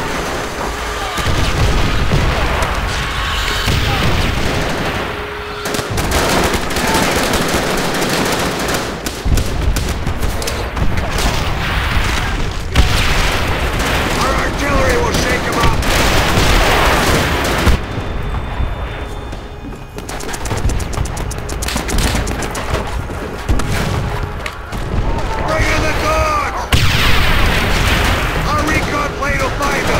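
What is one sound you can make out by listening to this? A rifle fires in a video game.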